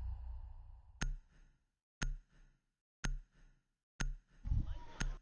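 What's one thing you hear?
A countdown timer ticks steadily.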